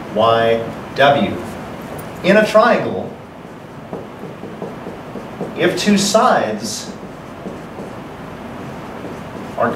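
A young man speaks calmly and slowly nearby, in short phrases.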